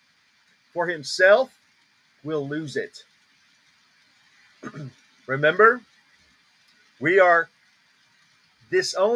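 A man speaks with animation over an online call, in short bursts.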